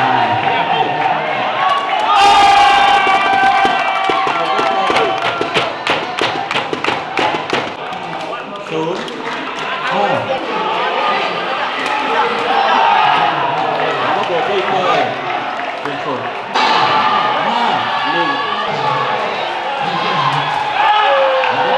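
A ball is kicked with sharp thumps in a large echoing hall.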